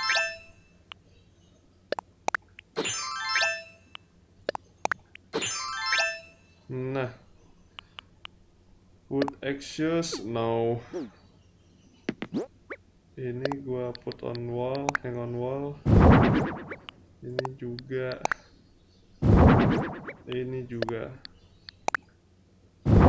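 Short chimes and clicks of a game menu sound repeatedly.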